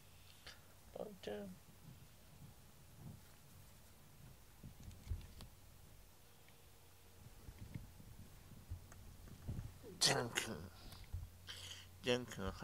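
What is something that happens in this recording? A cat meows close by.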